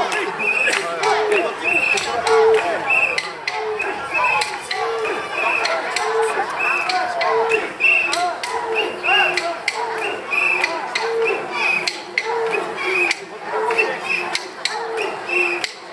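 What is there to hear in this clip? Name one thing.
A large crowd of men chants loudly in a steady rhythm outdoors.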